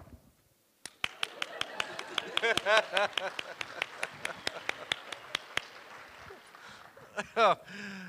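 An audience claps and applauds in a large hall.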